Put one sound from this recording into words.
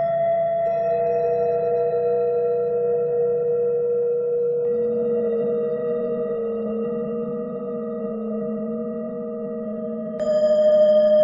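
A steady electronic tone hums, shifting pitch a few times.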